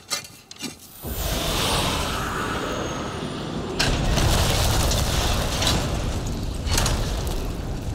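A magical burst rushes and shimmers loudly.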